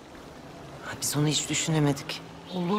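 A woman speaks firmly close by.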